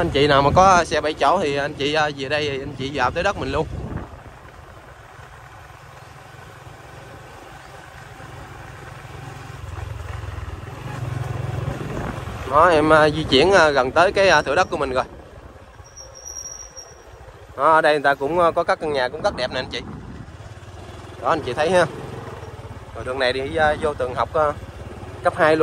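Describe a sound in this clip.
A motorbike engine hums steadily at low speed.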